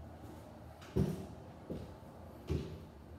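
Footsteps thud on stairs in an echoing stairwell.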